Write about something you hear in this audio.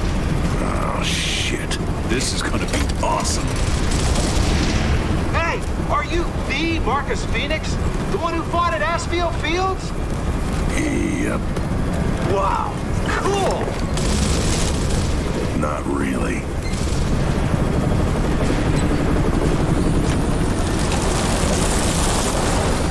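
A deep engine rumbles steadily throughout.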